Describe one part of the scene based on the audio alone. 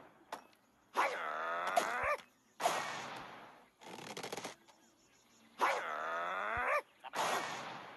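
Cartoon birds squawk with gliding cries as they are flung.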